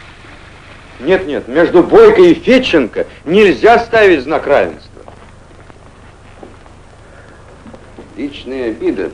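A man speaks loudly and firmly in an echoing room.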